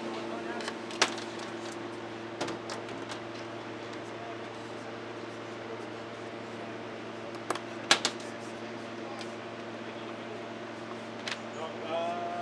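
Heavy electrical plugs click and clack as they are pushed into sockets.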